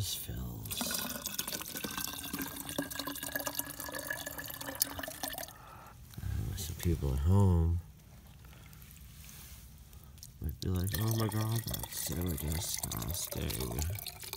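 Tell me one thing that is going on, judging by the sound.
Muddy water pours and trickles into a plastic bottle.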